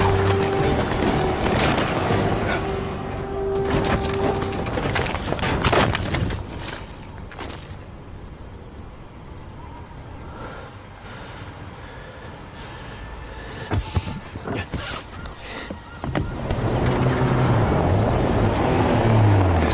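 Ice blocks smash and scatter.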